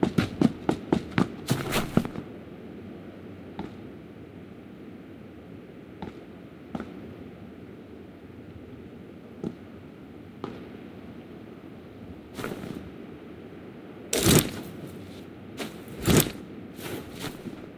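Footsteps crunch over dry ground at a steady walking pace.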